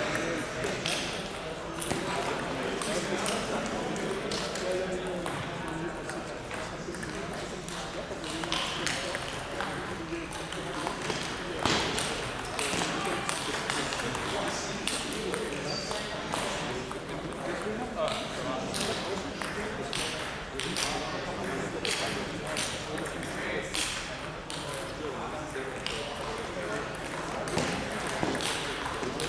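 Voices murmur in the background of a large echoing hall.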